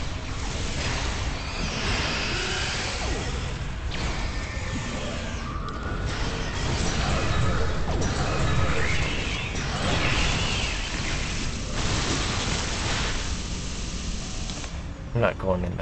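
Energy weapons blast and crackle in a fierce fight.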